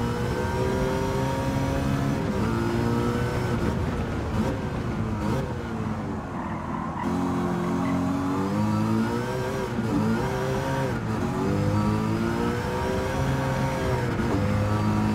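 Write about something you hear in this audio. A car engine roars loudly, revving up and dropping with each gear shift.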